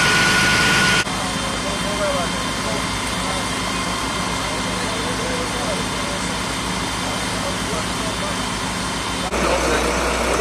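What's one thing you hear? Water hisses from a hose spraying into a car.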